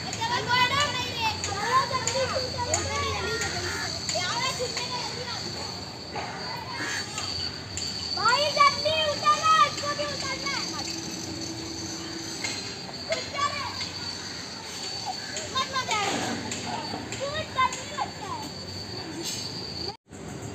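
Young boys call out and chatter excitedly nearby, outdoors.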